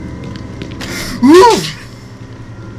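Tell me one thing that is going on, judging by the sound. A creature groans loudly.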